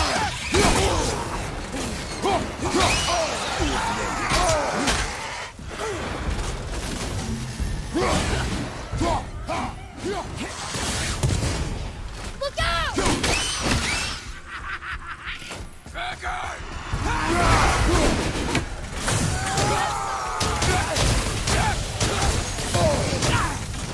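Fiery blasts burst loudly.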